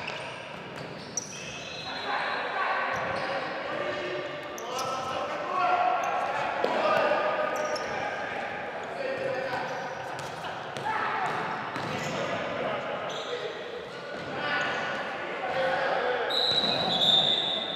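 A ball thumps as players kick it in an echoing hall.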